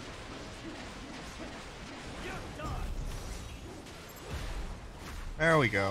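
Blades clash and slash with sharp metallic hits.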